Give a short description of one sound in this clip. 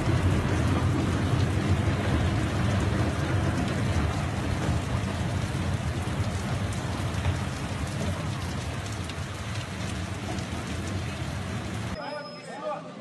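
Heavy rain pours down on a paved street.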